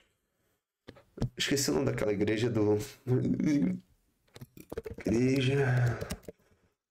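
A young man talks calmly and close to a microphone.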